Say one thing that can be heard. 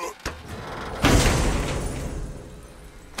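A heavy chest lid creaks and thuds open.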